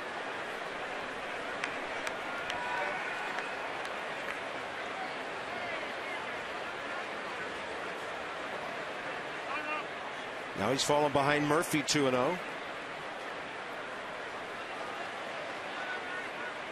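A large crowd murmurs in a ballpark's open stands.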